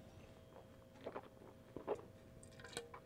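A man spits into a metal container.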